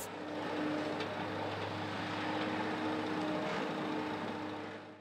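Metal clanks and scrapes as an excavator grab works.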